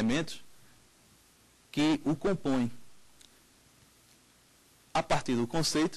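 A man speaks clearly and calmly into a microphone, in short phrases with pauses.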